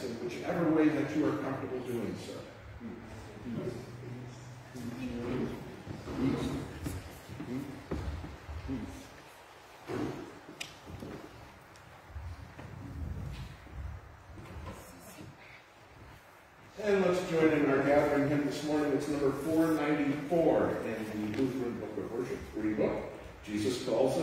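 An elderly man speaks calmly, echoing in a large hall.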